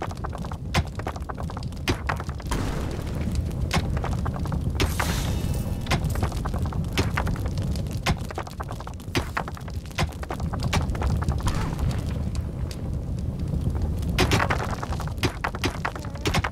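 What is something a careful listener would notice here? Pickaxes chip at rock in quick, sharp knocks.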